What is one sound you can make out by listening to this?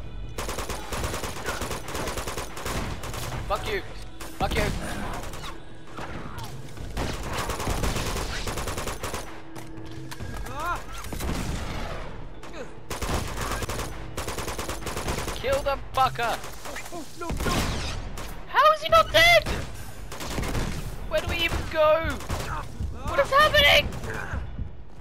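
Rifle fire rattles in rapid bursts.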